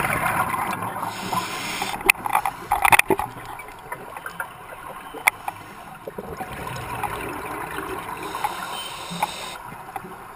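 Scuba bubbles gurgle and rush up as a diver breathes out underwater.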